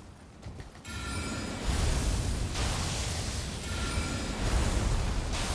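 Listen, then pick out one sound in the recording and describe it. A magic spell whooshes and hums loudly.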